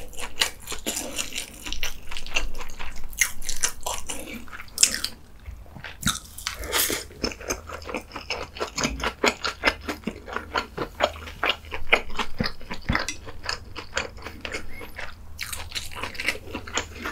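A man chews food wetly and smacks his lips up close.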